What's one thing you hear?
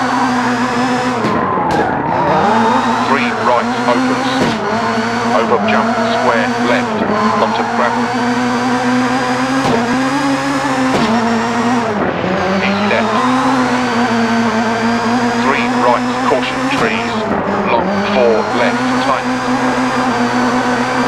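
A rally car engine roars steadily, its pitch dipping and rising with each gear change.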